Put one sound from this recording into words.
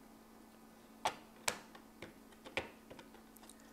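Plastic parts click as they are pressed together.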